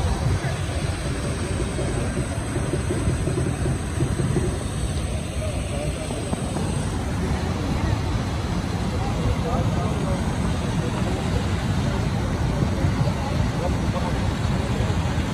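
Fast river water rushes and churns.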